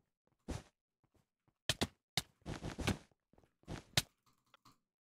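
Footsteps tap on stone in a video game.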